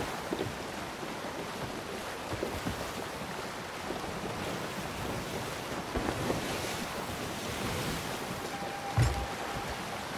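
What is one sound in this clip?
Rough sea waves splash and rush around a wooden ship.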